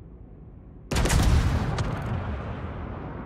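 Heavy naval guns fire with a loud, echoing boom.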